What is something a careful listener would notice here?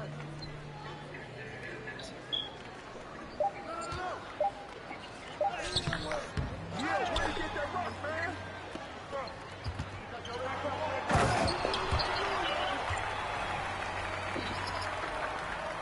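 A crowd in an arena cheers, swelling loudly near the end.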